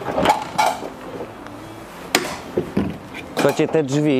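A van's rear door latch clicks open.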